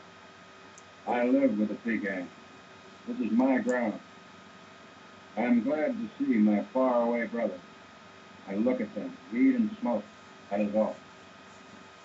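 An elderly man speaks slowly and deliberately in short phrases with pauses.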